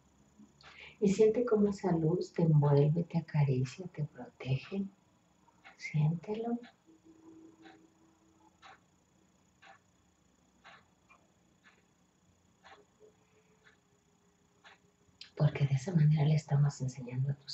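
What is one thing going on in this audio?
A woman speaks calmly and softly, close by, with pauses.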